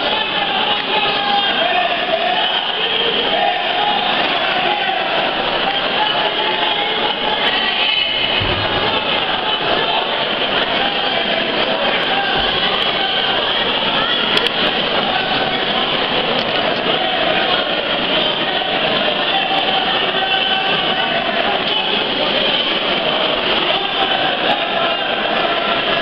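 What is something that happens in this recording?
A crowd chatters and calls out all around in a large echoing hall.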